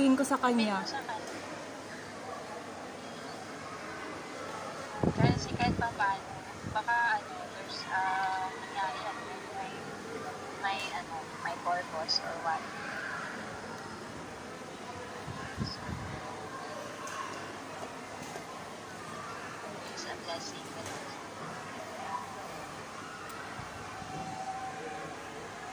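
A woman talks close by, heard through a phone call.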